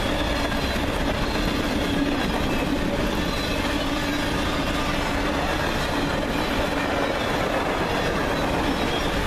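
Steel wheels clatter and squeal on the rails.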